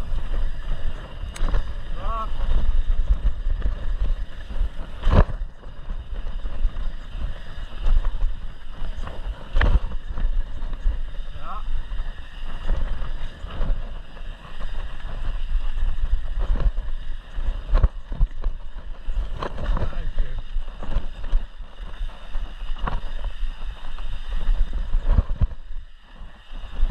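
Mountain bike tyres rumble and crunch over a dirt trail.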